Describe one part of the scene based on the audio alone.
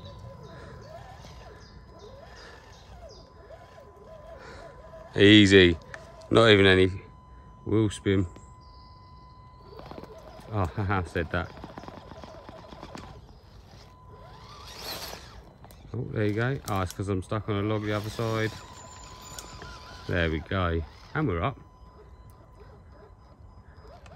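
A small electric motor whirs as a toy truck crawls over the ground.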